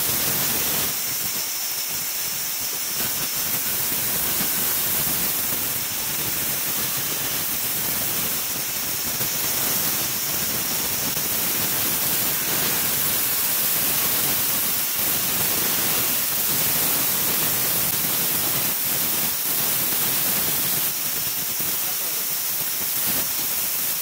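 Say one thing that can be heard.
A band saw whirs steadily while cutting through wood.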